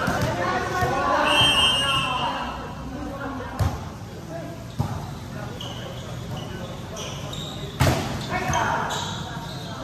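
Players shout and call out in a large echoing hall.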